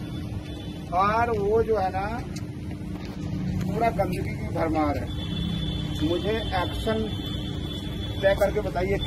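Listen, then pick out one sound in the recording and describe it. A man speaks loudly outdoors.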